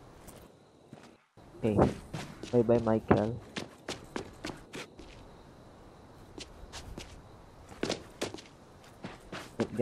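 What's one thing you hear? Footsteps tap on hard stone paving.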